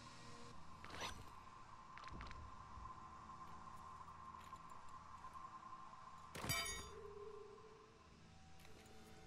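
Soft menu clicks sound as items are selected.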